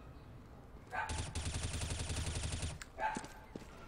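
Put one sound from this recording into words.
An automatic rifle fires a long rapid burst.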